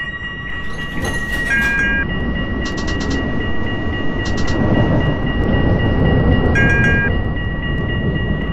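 A tram passes close by with a deep rumble.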